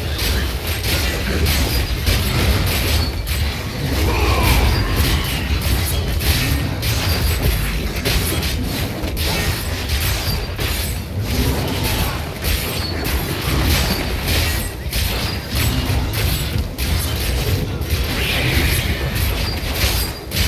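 Spell blasts and hits crackle and thud in a game battle.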